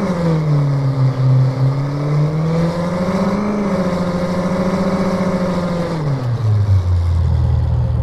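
A car engine revs up and down as the car drives.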